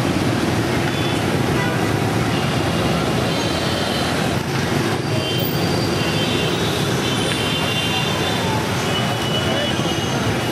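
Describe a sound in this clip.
Busy street traffic rumbles steadily.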